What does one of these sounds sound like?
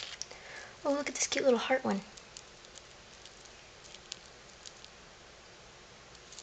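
Plastic beads click softly against each other.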